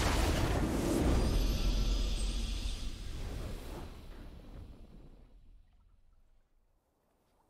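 A triumphant game fanfare plays and fades out.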